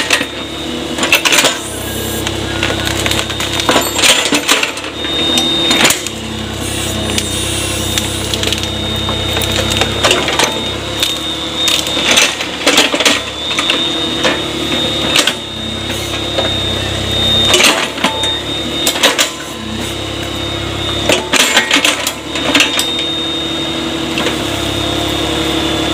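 An excavator's hydraulics whine.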